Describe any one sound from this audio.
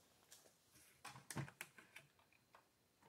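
A hinged hatch cover clicks and knocks as it is lifted open.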